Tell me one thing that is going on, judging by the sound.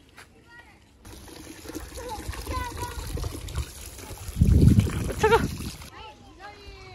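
Water gushes from a tap and splashes into a tub.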